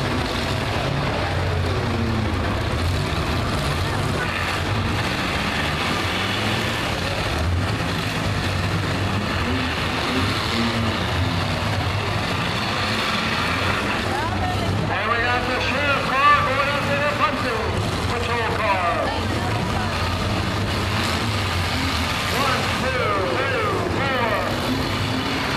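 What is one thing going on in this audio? Car engines roar and rev steadily outdoors.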